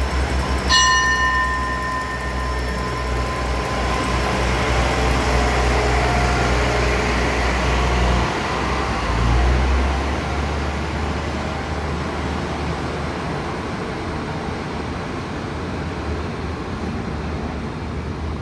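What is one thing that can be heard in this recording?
A diesel train rumbles and rolls slowly along the tracks nearby.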